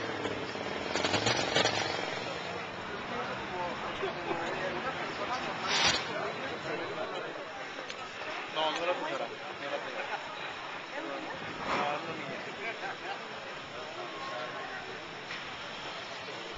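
Men talk in the street nearby.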